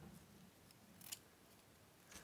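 Scissors snip through a ribbon.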